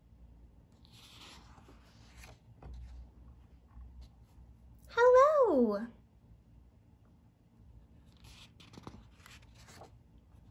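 A book's paper page rustles as it turns.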